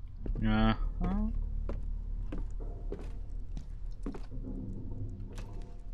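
Footsteps tap slowly on a wooden floor.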